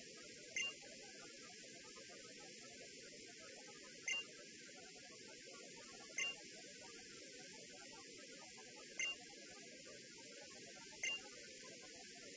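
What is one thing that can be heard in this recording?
A soft beep sounds each time a line of text moves on.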